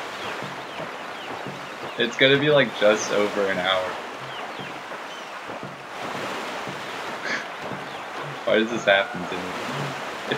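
Water splashes steadily as a paddle churns through it.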